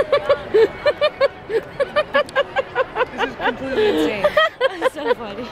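A young woman laughs loudly and rhythmically close by.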